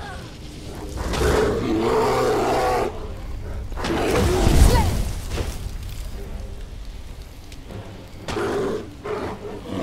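Flames burn with a roaring rush.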